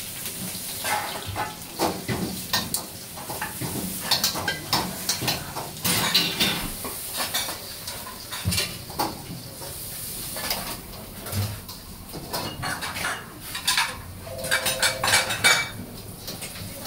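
Steam hisses steadily from a boiling pot.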